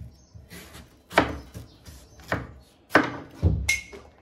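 A cut piece drops onto a wooden board with a soft thud.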